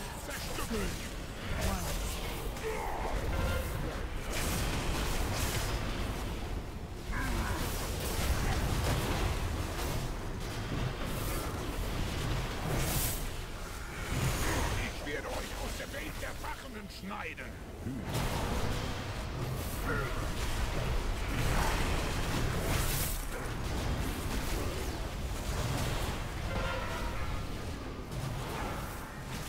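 Spell effects and weapon strikes clash in a video game battle.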